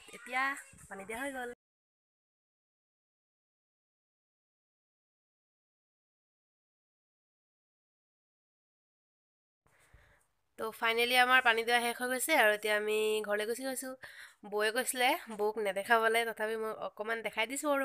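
A young woman talks with animation close to the microphone.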